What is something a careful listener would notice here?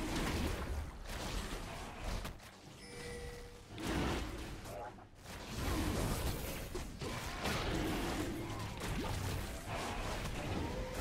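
Fantasy battle sound effects whoosh, clash and boom.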